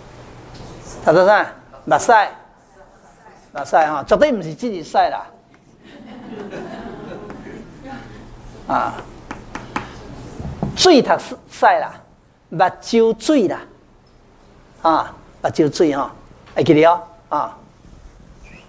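An elderly man lectures with animation through a lapel microphone.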